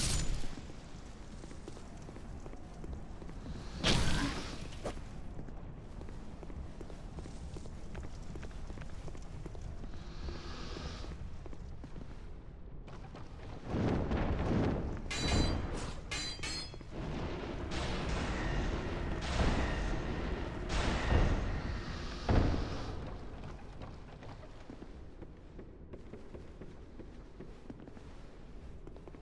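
Armoured footsteps run over stone.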